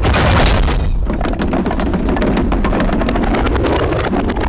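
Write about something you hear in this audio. A wooden log rolls and clatters rapidly along a wooden track.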